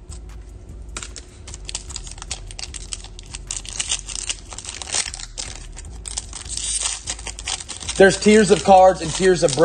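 A foil card pack crinkles and tears as fingers open it up close.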